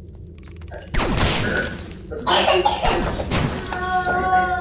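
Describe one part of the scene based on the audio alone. Game sound effects of blows and magic blasts burst out in quick succession.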